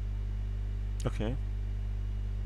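A man gives a short vocal exclamation close to a microphone.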